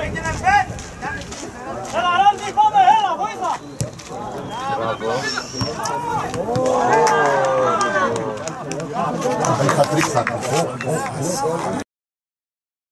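Men shout and call out loudly outdoors across an open field.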